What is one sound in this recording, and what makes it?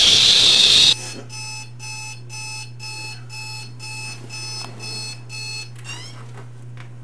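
An alarm clock beeps in a quick, steady rhythm.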